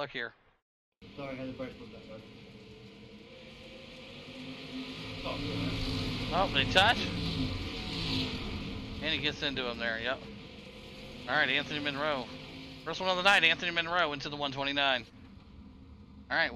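Racing car engines roar around a track.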